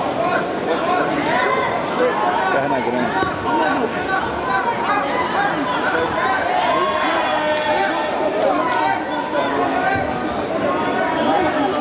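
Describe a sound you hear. A crowd of men and women chatters and calls out loudly in a large echoing hall.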